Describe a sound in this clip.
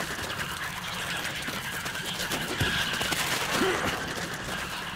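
A creature screeches and snarls close by.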